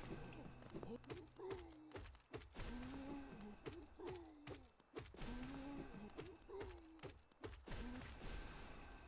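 A large creature lets out deep, moaning cries.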